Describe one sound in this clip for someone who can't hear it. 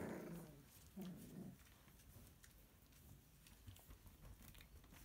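Puppy claws scratch and tap on a hard floor.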